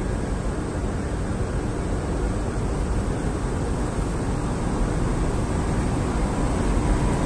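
An electric locomotive approaches with a low rumble, growing slowly louder.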